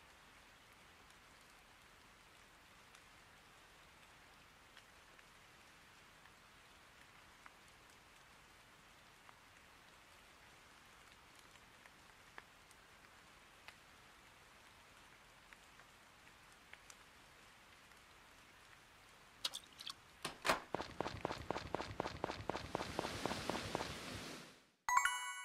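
Rain patters softly and steadily.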